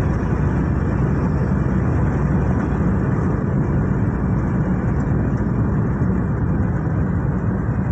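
Tyres roll on the road with a constant rumble.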